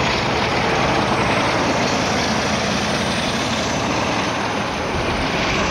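A diesel locomotive rumbles loudly past at close range.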